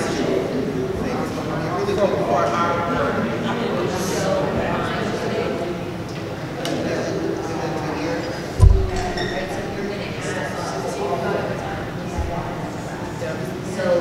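Several adults talk quietly at once in a large echoing hall.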